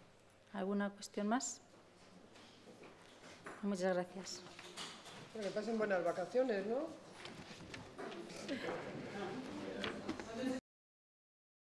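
A woman speaks calmly into a microphone at close range.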